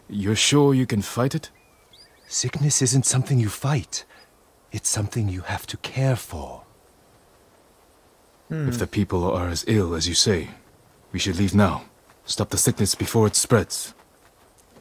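A man asks a question in a calm, serious voice.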